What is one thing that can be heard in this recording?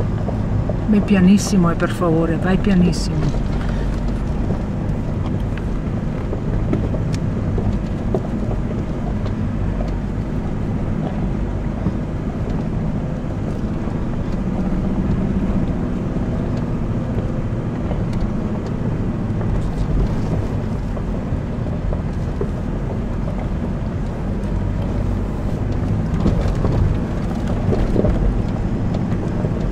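A vehicle engine rumbles steadily while climbing a rough dirt track.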